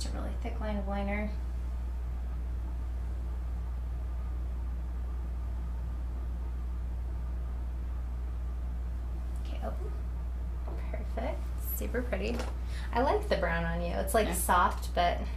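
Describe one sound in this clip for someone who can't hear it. A woman speaks calmly and closely, in short bursts.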